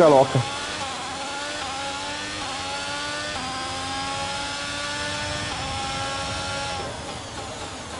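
A racing car engine whines and climbs in pitch through the gears.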